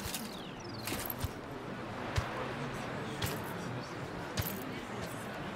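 Heavy footsteps thud on stone at an even pace.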